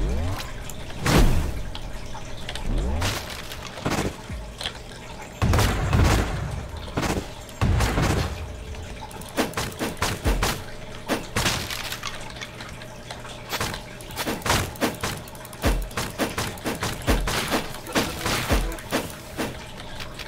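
Blades swish and strike with sharp impacts in quick bursts.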